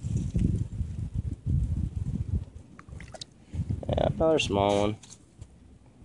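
A small fish flops and slaps on ice.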